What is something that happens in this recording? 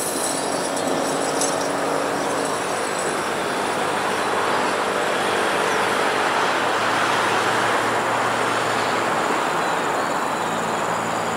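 An electric train rumbles and hums steadily as it approaches along the tracks.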